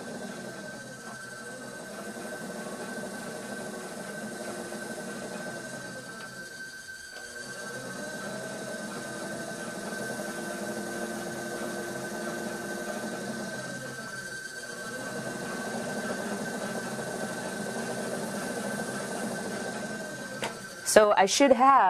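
A potter's wheel motor hums steadily.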